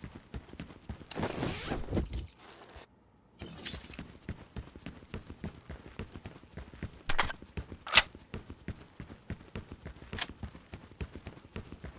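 Footsteps tread quickly on hard ground.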